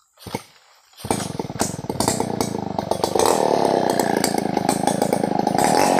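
A chainsaw starts up and roars loudly, close by.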